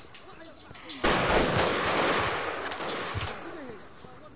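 Gunfire rattles in a quick burst.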